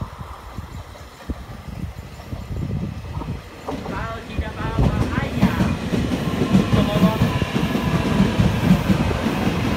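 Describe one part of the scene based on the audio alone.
A train rumbles closer along the tracks and grows louder.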